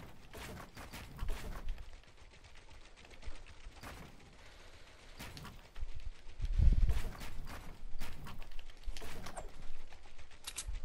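Video game building pieces snap into place with sharp clicks.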